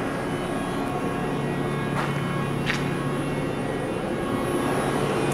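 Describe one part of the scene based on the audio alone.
Machines hum steadily in a large echoing hall.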